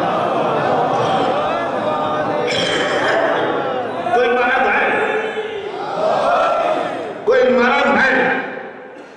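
An elderly man speaks with feeling into a microphone, heard through loudspeakers in a large echoing hall.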